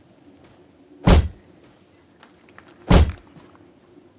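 Heavy blows thud in a fight.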